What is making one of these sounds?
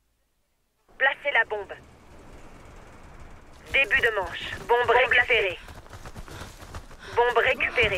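Gunshots ring out in a video game.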